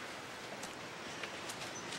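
Dry leaves rustle and crunch under footsteps.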